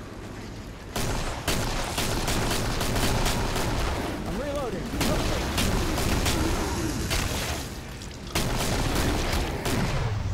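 Rapid gunshots fire in bursts, echoing in a tunnel.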